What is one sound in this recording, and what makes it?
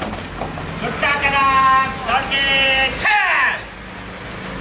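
A man shouts drawn-out commands outdoors.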